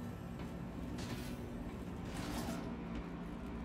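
A sliding door hisses shut with a quick whoosh.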